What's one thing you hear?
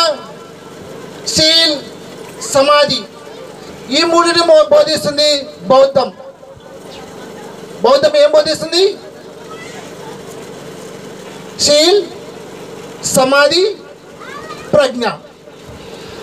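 A man speaks with animation into a microphone, heard through loudspeakers outdoors, in bursts with pauses.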